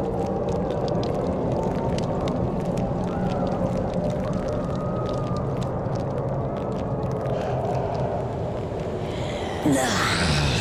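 Loose gravel and dirt crunch and scrape as they are dug through by hand.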